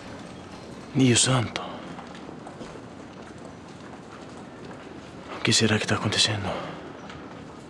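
A man speaks in a strained, emotional voice close by.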